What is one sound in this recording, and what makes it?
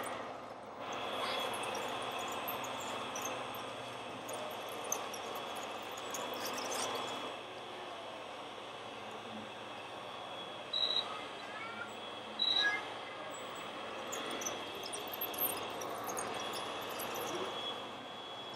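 A small electric motor whines steadily as a model tipper body rises.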